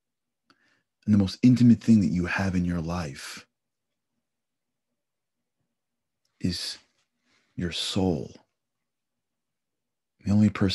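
A man speaks calmly and close into a microphone, in short bursts with pauses.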